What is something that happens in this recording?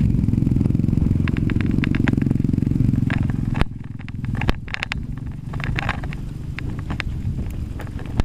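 Bike tyres rattle and clatter over a bumpy dirt trail.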